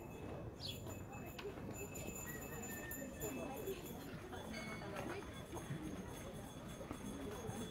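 A crowd of men and women murmurs and talks nearby outdoors.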